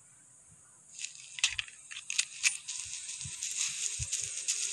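Pistol shots crack sharply, one after another.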